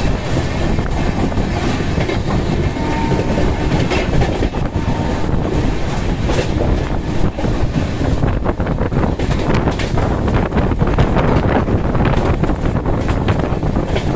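A moving train rumbles and rattles loudly along the track.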